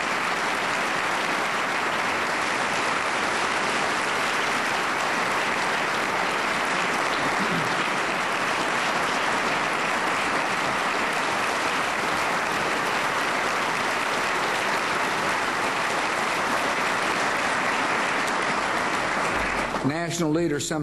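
An audience applauds loudly in a large hall.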